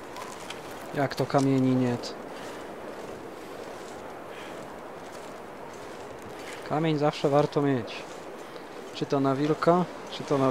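A young man speaks briefly into a microphone.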